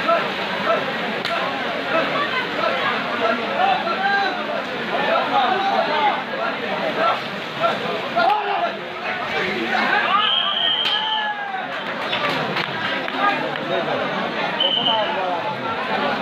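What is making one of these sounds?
A large crowd of men and boys shouts and cheers loudly outdoors.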